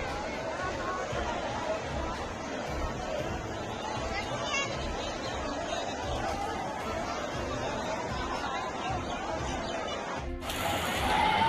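Water splashes as people wade through a flood.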